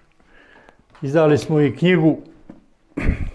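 An elderly man speaks calmly, close to a clip-on microphone.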